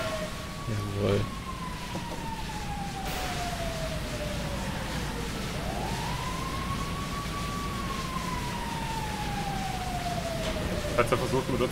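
Water hisses steadily from a fire hose.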